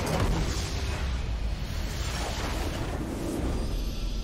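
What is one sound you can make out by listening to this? Game spell effects crash and explode in a loud battle.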